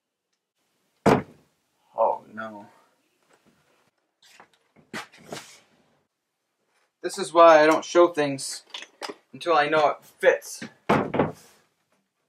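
A knock sounds on a wooden door.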